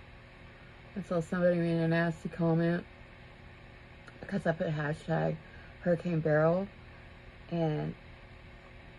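An older woman talks calmly, close to a microphone.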